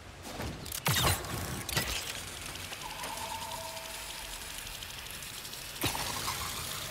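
A zipline pulley whirs along a cable with a rushing whoosh.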